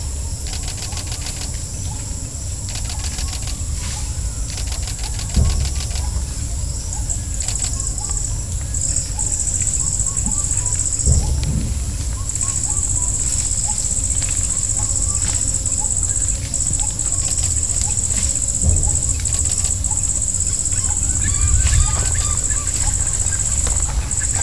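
Elephants rustle through leafy branches.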